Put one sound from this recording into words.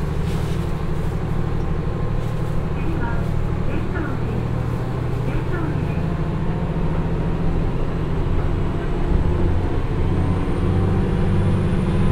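A diesel train engine rumbles steadily as the train pulls away.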